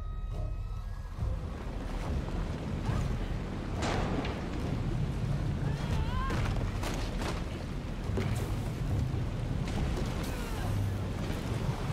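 Waves crash and surge with a deep, steady rumble.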